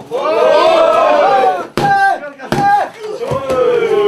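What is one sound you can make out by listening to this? Bodies thud onto a padded mat.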